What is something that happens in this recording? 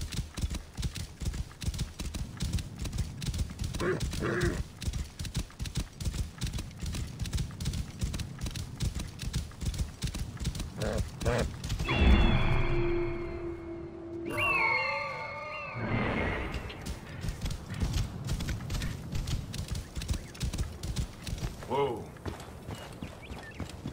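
Horse hooves pound rapidly on sand at a gallop.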